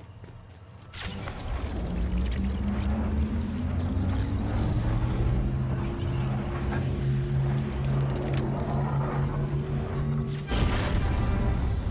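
A vehicle engine starts and hums steadily, rising in pitch.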